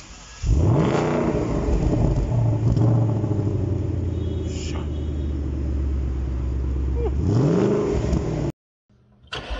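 A car engine idles with a deep burbling exhaust and revs up sharply.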